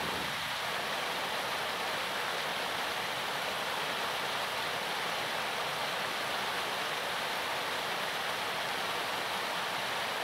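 A small stream rushes and splashes steadily over rocks.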